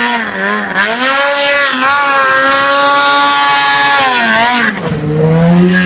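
Water sprays and splashes as a snowmobile skims across it.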